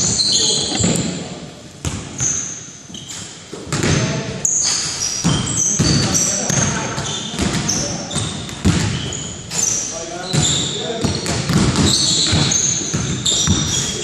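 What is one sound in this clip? Sneakers squeak on a hardwood floor in an echoing gym.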